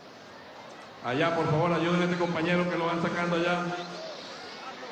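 A man speaks forcefully into a microphone, heard over loudspeakers.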